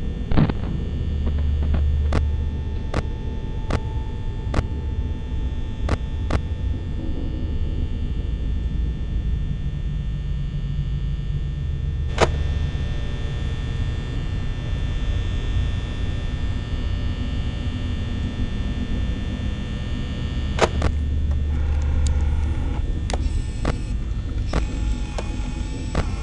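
Sharp electronic clicks sound now and then.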